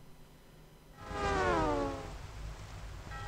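A short, playful electronic jingle plays.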